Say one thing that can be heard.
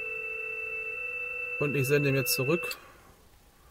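A laptop speaker plays steady electronic tones.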